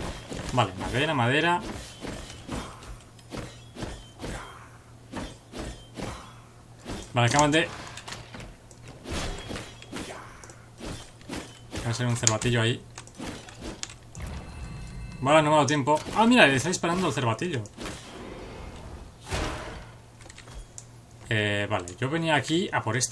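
A young man talks with animation, close to a microphone, in short bursts.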